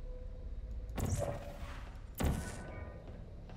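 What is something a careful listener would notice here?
A sci-fi gun fires twice with sharp electric whooshes.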